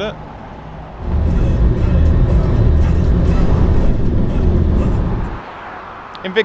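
A car engine hums and tyres rumble on the road at speed.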